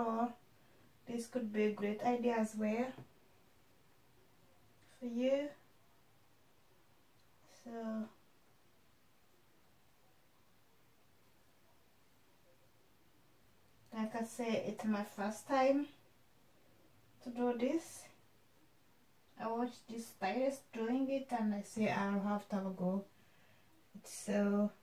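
A young woman talks calmly close by, in short bursts with pauses.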